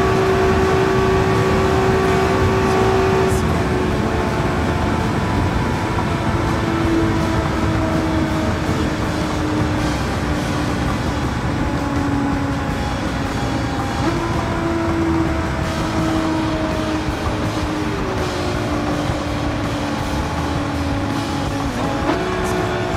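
Tyres hum loudly on the road.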